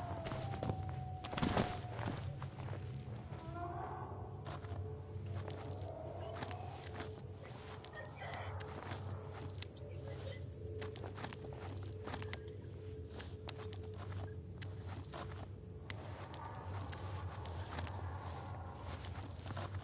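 Footsteps tread slowly over rocky ground.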